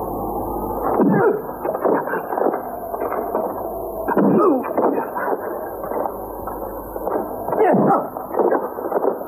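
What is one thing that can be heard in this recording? Punches thud during a fistfight.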